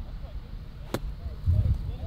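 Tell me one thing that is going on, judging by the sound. A golf club thumps into sand.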